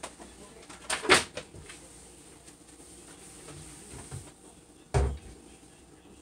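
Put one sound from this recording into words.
Objects clatter and knock on a counter close by.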